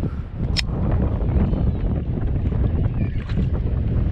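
A fishing reel clicks as it is wound in.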